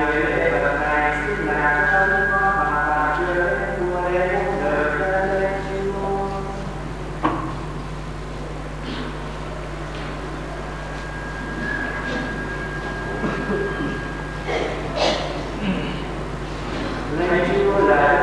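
A man chants slowly into a microphone.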